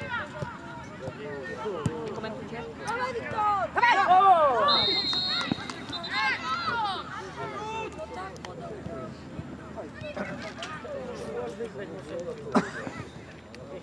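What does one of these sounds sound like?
Young boys shout to each other outdoors across an open field.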